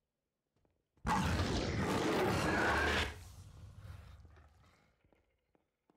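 A creature lets out a sudden, loud, harsh screech that fades away.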